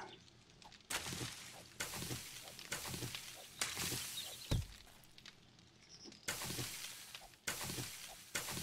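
Leafy plants rustle as they are pulled up by hand.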